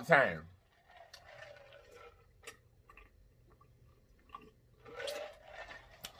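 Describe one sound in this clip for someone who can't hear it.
A man sips a drink.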